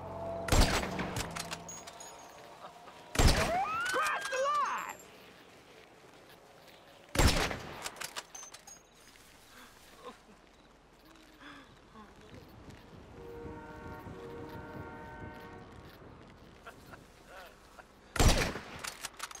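A rifle fires loud single shots that echo away.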